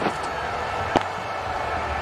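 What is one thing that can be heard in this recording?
A bat strikes a cricket ball with a sharp crack.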